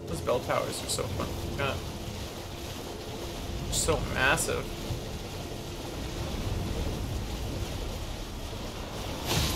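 A horse gallops with heavy, rapid hoofbeats.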